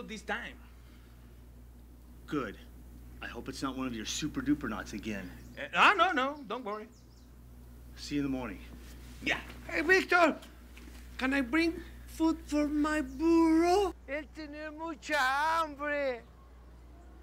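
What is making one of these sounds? A second man answers in a raised voice.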